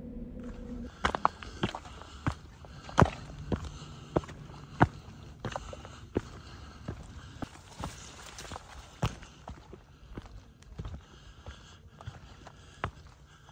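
Footsteps crunch steadily on rocky ground outdoors.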